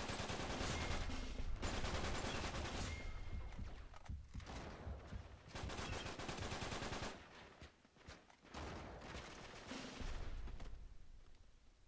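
Automatic rifles fire in rapid bursts.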